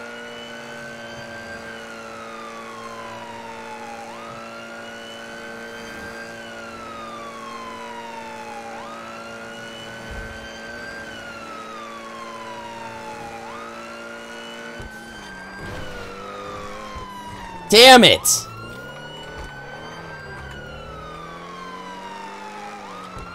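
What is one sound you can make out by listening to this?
A car engine revs up and down again and again as it shifts through gears.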